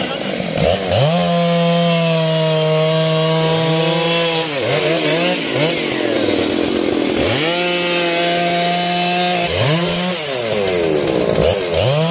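Two chainsaws roar close by, revving up and down as they cut through wood.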